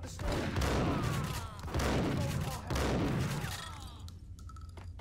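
Gunshots fire in rapid bursts and echo down a hard corridor.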